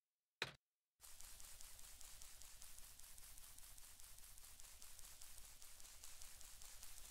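Quick soft footsteps patter along.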